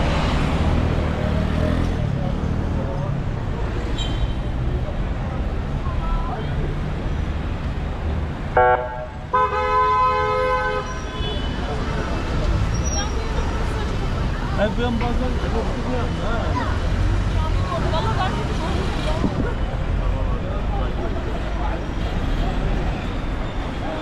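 Many people chatter in the street.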